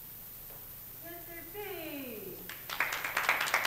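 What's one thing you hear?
A choir of young voices sings a final note that slides downward and stops.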